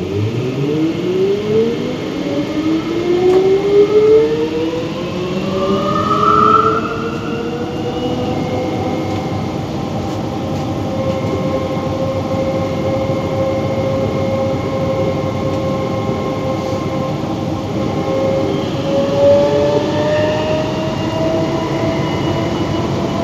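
A train's electric motors whine, rising in pitch as the train speeds up.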